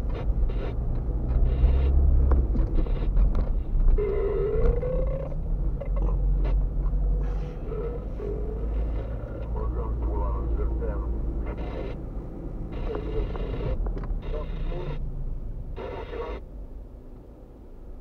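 A car drives slowly over rough asphalt, its tyres and engine rumbling inside the cabin.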